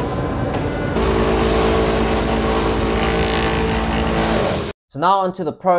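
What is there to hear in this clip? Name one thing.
A grinding machine whirs loudly.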